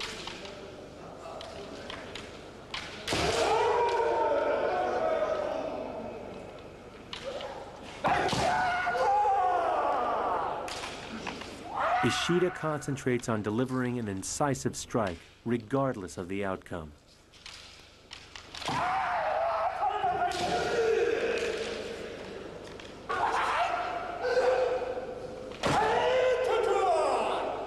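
Men shout loud, drawn-out battle cries in an echoing hall.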